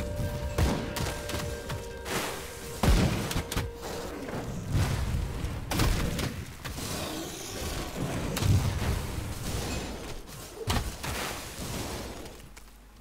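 Weapons strike and thud against enemies.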